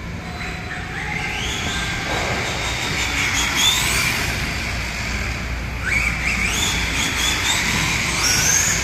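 A small electric car motor whines, rising and falling in pitch as it speeds up and slows.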